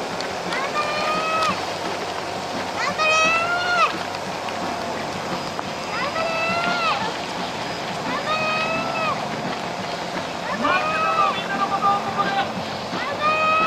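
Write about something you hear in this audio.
Many runners' footsteps patter on a paved road.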